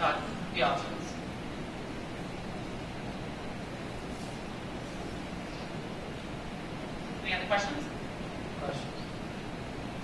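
A man speaks in short bursts in a large echoing room, heard from a distance.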